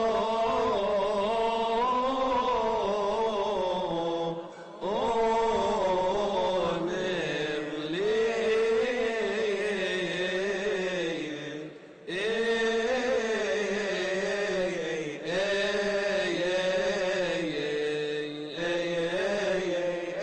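A group of men chant together in a large echoing hall, heard through a microphone.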